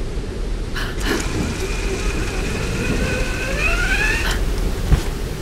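A rope creaks and whirs as a woman slides down a zip line.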